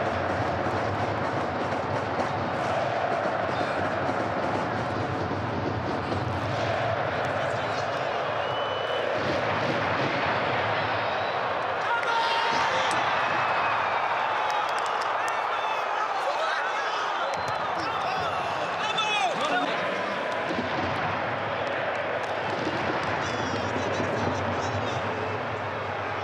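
A large stadium crowd roars and chants steadily throughout.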